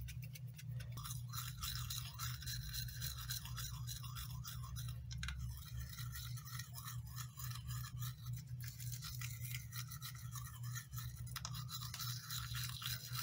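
A toothbrush scrubs teeth with a quick brushing sound.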